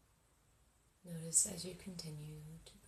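A young woman speaks softly and calmly, close by.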